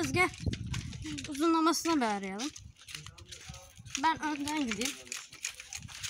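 A young boy talks with animation close by.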